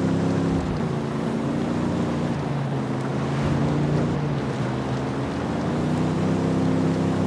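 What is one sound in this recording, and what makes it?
An SUV engine hums as it drives along a dirt road.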